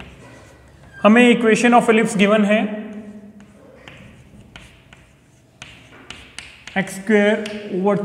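A man speaks calmly nearby, in a slightly echoing room.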